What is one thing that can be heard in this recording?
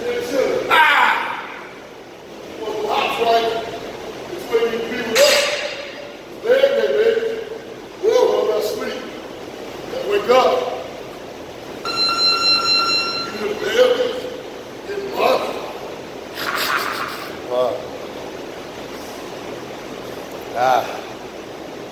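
A man shouts and cheers loudly nearby, in a room with some echo.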